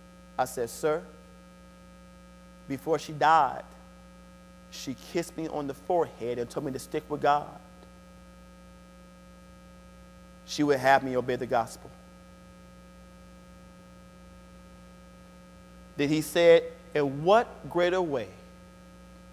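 A man speaks slowly and deliberately into a microphone in an echoing hall, with long pauses.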